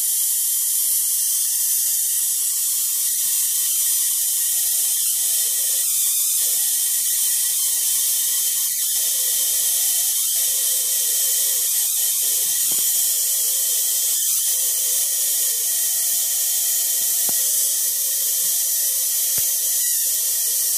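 A plasma globe gives off a steady, faint high buzz.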